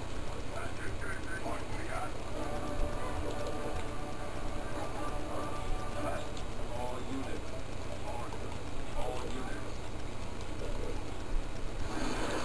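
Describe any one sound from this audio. Video game battle sounds play from a television loudspeaker.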